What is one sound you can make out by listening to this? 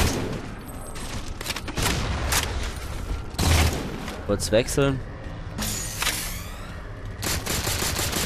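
A video game rifle fires rapid bursts.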